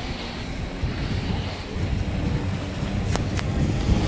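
Chairlift wheels clatter while passing over a tower.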